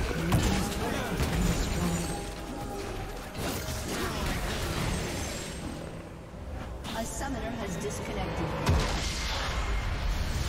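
Spell blasts crackle and boom in quick bursts.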